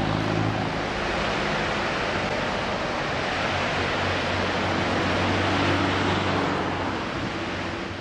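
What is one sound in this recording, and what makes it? A vehicle engine hums steadily at low pitch.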